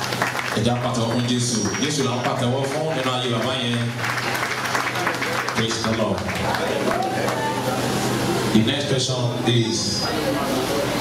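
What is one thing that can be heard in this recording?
A man speaks loudly through a microphone over a loudspeaker.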